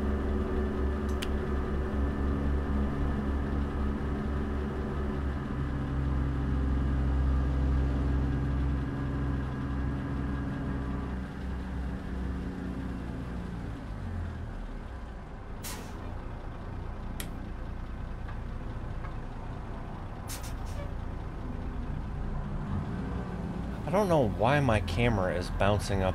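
A truck engine rumbles steadily, then eases off to a lower drone.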